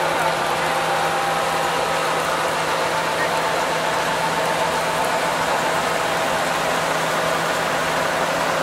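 A tractor engine hums steadily close by.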